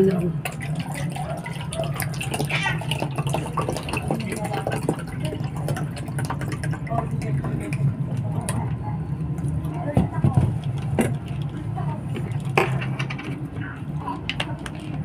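A plastic bottle crinkles in a hand.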